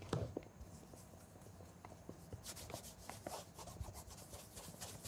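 Small knocks and squeaks sound as a shoe is handled.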